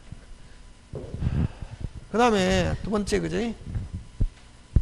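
A man speaks loudly with animation into a microphone.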